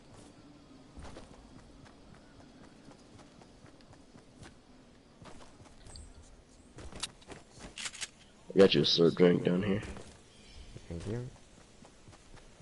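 Footsteps patter on grass.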